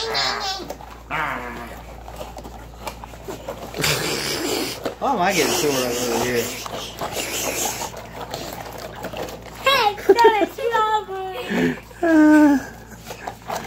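A young girl squeals and laughs close by.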